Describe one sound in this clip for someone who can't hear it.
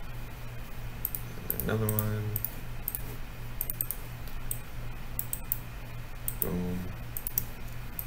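Soft game menu clicks tick again and again.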